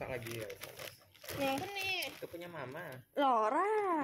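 Plastic snack packets crinkle as a hand moves them.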